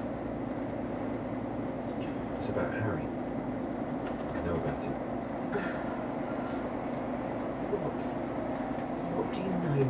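A car engine hums steadily from inside.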